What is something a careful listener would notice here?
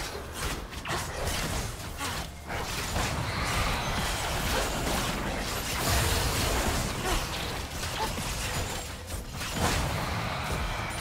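Magical spells blast and crackle in a busy video game battle.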